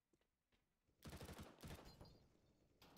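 A submachine gun fires a quick burst of shots.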